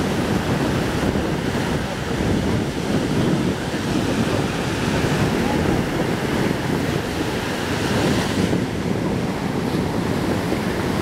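Wind blows hard and rumbles outdoors.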